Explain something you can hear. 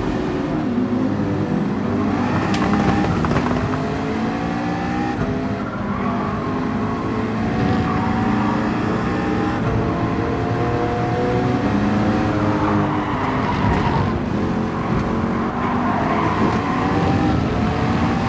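Other racing cars' engines roar close by.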